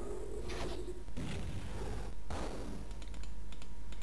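A fireball bursts with a whooshing roar.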